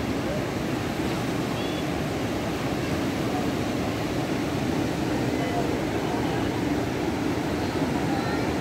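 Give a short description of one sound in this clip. A flooded river roars steadily over rapids outdoors.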